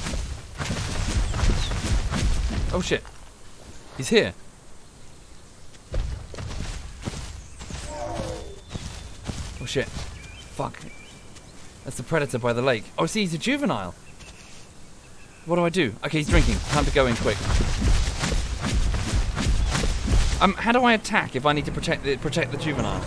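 Heavy footsteps thud and rustle through grass.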